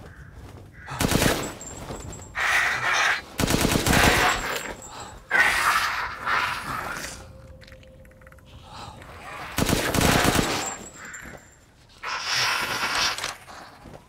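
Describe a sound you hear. A rifle fires loud shots in short bursts.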